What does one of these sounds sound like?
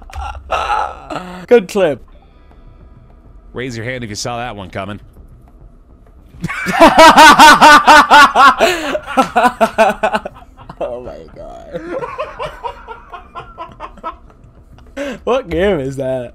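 A young man laughs loudly and heartily into a close microphone.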